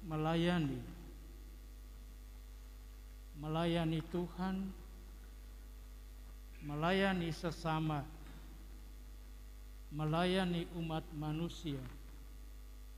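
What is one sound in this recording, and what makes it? An elderly man chants slowly into a microphone, in short phrases with pauses, in a reverberant hall.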